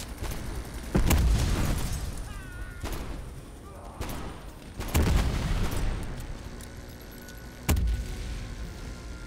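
Gunshots boom loudly, each followed by a rolling echo.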